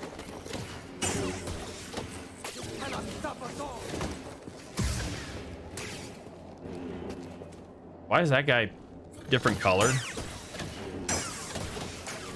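A lightsaber whooshes as it swings.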